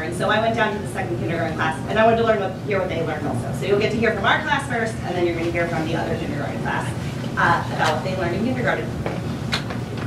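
A woman speaks calmly to an audience.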